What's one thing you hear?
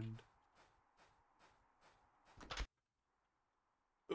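A wooden door opens and closes.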